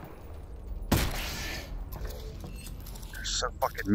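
A pistol is reloaded with a metallic click.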